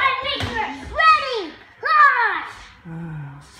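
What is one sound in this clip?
A young child shouts and wails loudly close by.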